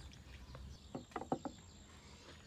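A glass clinks down on a wooden table.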